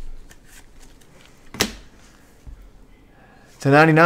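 A plastic case clicks.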